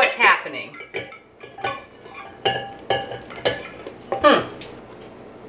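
A spatula scrapes against a metal bowl.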